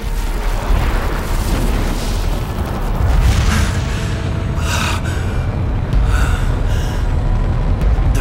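A flame bursts to life and roars softly.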